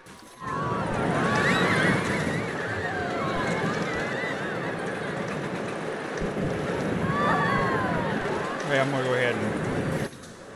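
A roller coaster rumbles and clatters along its track at speed.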